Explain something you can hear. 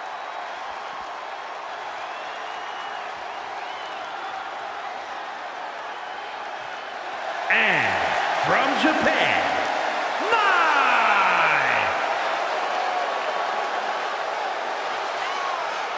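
A large crowd cheers steadily in a big echoing arena.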